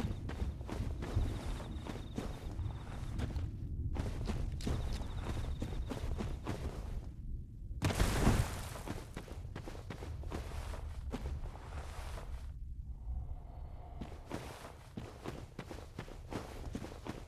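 Heavy footsteps thud quickly over the ground with a light clank of armour.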